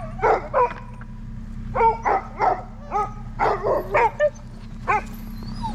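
Dogs bark and yelp excitedly outdoors.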